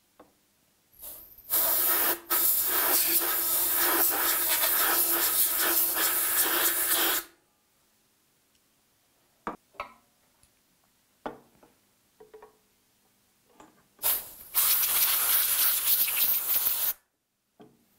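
Compressed air hisses loudly from an air blow gun.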